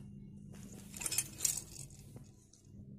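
A small toy rattles in a baby's hands.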